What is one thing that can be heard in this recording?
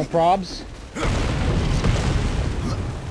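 A loud explosion bursts with a fiery roar.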